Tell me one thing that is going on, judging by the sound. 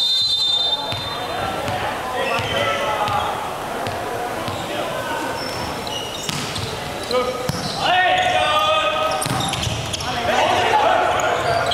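Players' shoes squeak on a hard floor in a large echoing hall.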